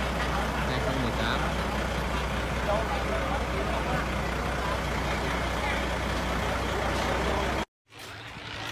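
A truck engine idles with a steady low rumble.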